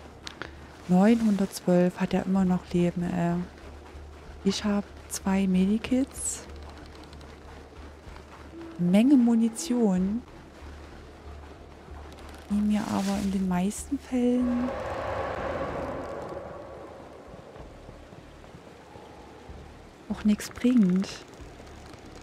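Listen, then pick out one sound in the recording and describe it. A young woman talks with animation through a close microphone.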